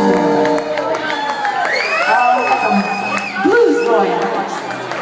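A live band plays loudly with electric guitars.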